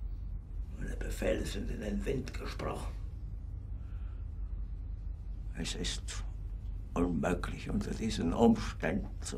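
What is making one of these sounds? A middle-aged man speaks quietly and wearily.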